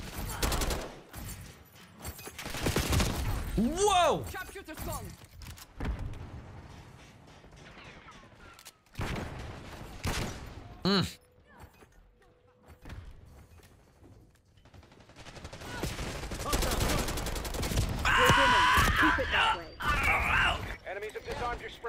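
Gunfire cracks in quick bursts.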